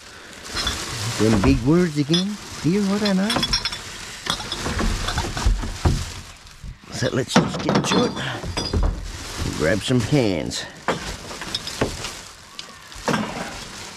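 A plastic bin bag rustles and crinkles close by.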